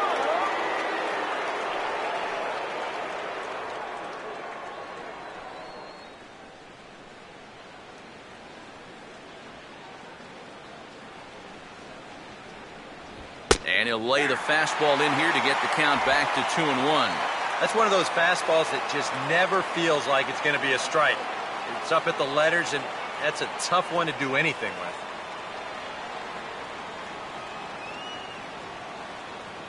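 A crowd murmurs in a large stadium.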